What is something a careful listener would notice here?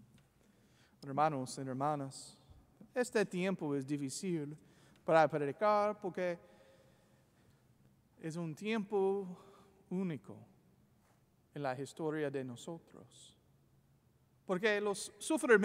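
A man speaks slowly and solemnly into a microphone in a large echoing hall.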